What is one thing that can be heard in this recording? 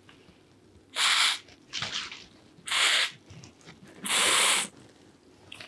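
A spray bottle hisses in short bursts close by.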